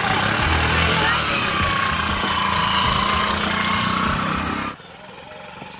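A motorcycle engine runs nearby.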